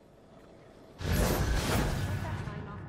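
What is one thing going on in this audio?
A heavy whooshing thud rings out as a figure lands hard.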